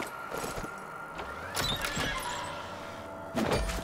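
A wooden crate lid creaks open.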